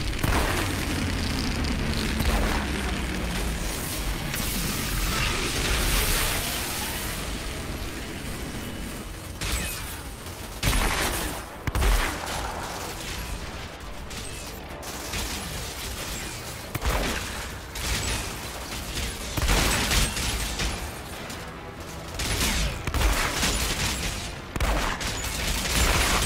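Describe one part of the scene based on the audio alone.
Gunfire bursts and booms ring out in a fierce battle.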